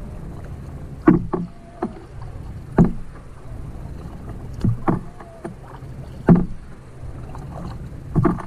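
A paddle splashes and dips into water at a steady rhythm.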